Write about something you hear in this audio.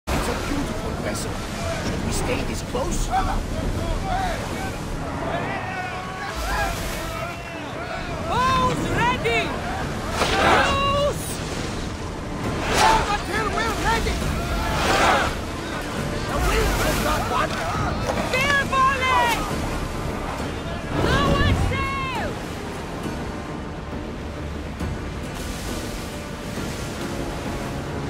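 Waves splash against a ship's hull.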